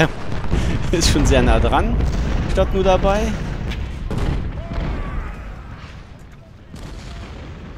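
Cannon fire booms in the distance.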